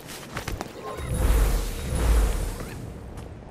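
A magical shimmering whoosh swells up.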